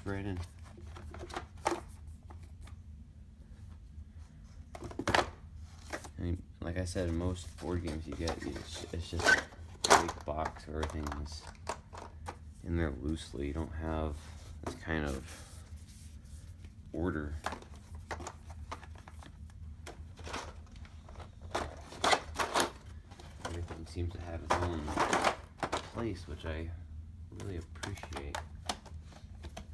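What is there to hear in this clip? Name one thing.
Plastic trays and cardboard pieces clatter and rustle as they are handled.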